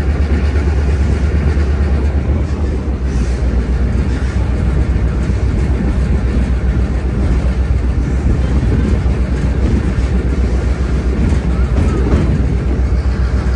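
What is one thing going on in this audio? A train rumbles and rattles steadily along the track.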